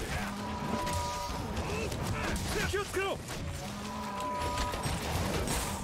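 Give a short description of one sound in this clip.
Sword impacts clash loudly in a game.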